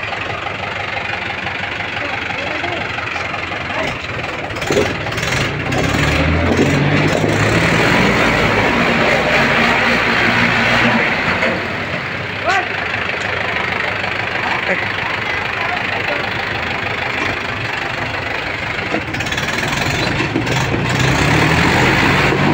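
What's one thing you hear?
Tractor engines rumble and chug close by.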